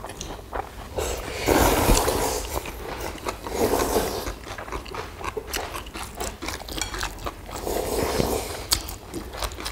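People slurp noodles loudly, close by.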